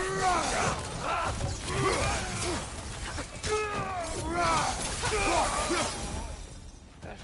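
Heavy weapon blows clash and thud in quick succession.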